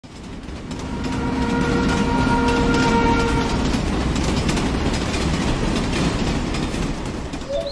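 A train rumbles past on the tracks.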